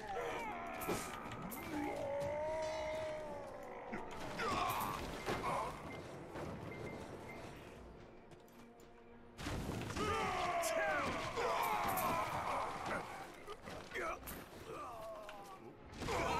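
Video game combat effects whoosh and clash.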